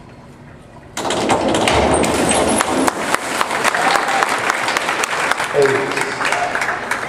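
A crowd cheers and applauds loudly in an echoing hall.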